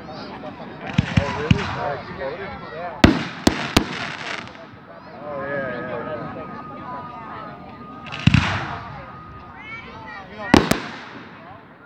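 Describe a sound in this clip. Fireworks burst with loud booms and sharp cracks.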